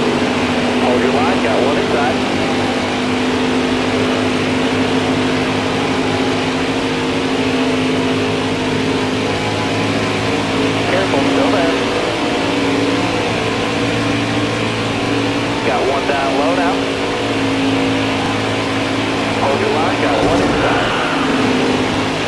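A racing engine roars steadily at high revs.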